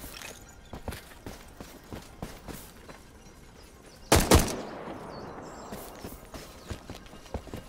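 Footsteps of a game character run over grass and stone.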